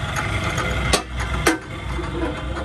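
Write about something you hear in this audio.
A metal cover clanks shut.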